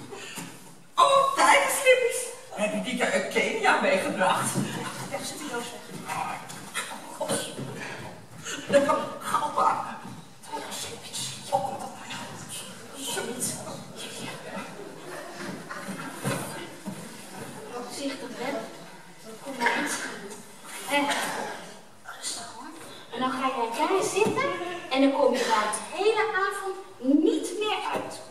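A woman speaks with animation on a stage, heard in a large hall.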